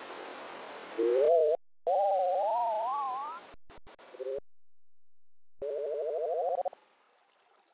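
A playful electronic jingle warbles and rises in pitch.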